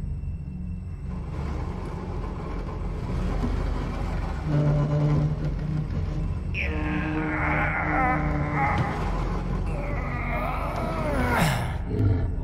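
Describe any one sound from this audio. A heavy crate scrapes as it is pushed across the floor.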